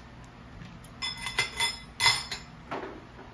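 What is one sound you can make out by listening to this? A fork and spoon clatter into a bowl.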